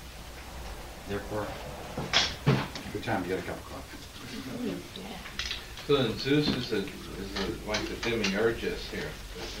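An older man speaks calmly, as if lecturing.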